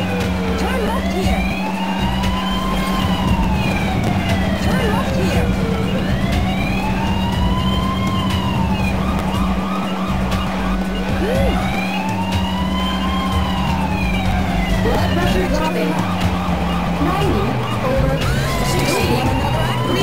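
An ambulance siren wails up and down in a steady rising and falling cycle.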